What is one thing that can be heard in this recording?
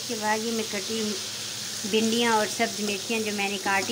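Chopped vegetables tumble into a hot pan.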